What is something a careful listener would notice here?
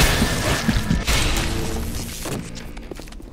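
Electricity crackles and buzzes close by.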